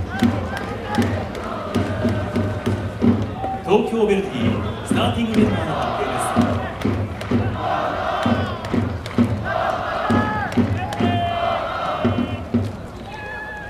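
A large crowd of fans claps in rhythm.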